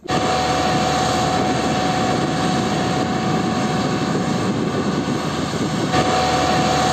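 A heavy diesel engine rumbles loudly close by.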